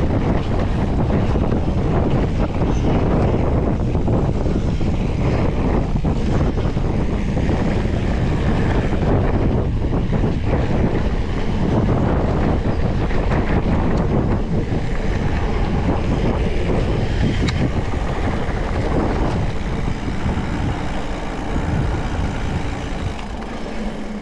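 A bicycle's chain and frame rattle over bumps.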